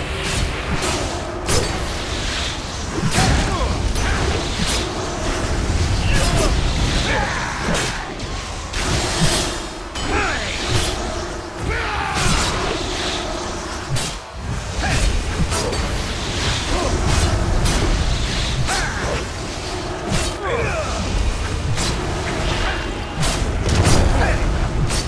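Magic spells whoosh and chime in a fight.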